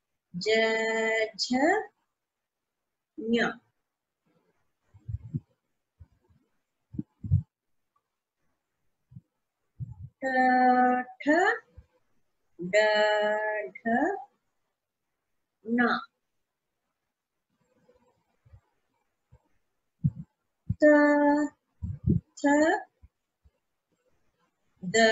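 A woman speaks calmly and clearly through a microphone, pronouncing syllables one at a time with pauses.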